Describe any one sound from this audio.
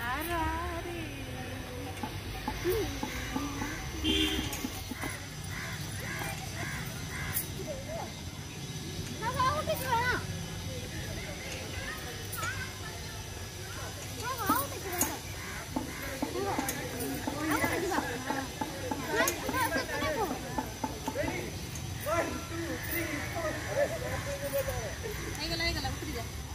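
A young boy talks and laughs close by.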